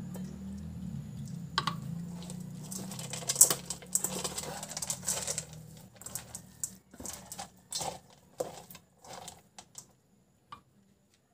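A hand squishes and mixes cooked rice in a steel bowl.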